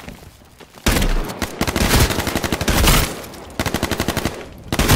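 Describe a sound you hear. Shotgun blasts ring out in quick bursts.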